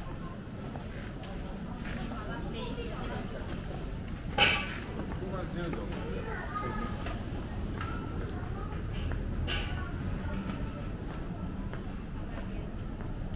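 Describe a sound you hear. Footsteps tap on paving.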